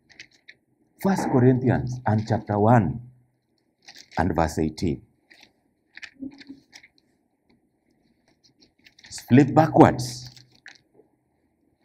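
A middle-aged man speaks slowly and with emphasis into a microphone, with pauses between phrases.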